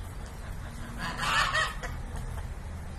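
A rooster crows briefly nearby.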